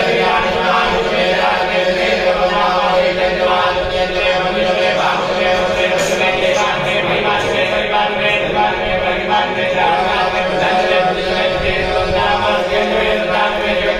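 Men chant steadily nearby.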